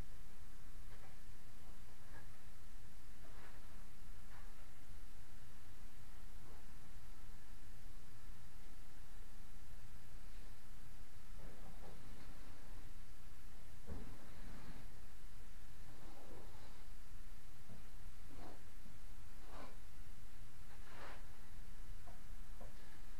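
A plastic sheet rustles and crinkles as someone shifts on it.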